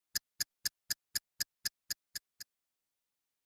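Phone keypad buttons click in a quick, even series.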